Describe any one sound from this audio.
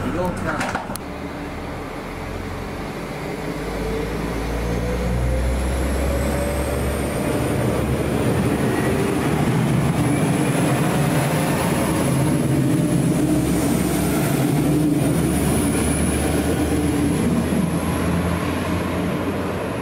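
A diesel train rumbles as it pulls in and drives off.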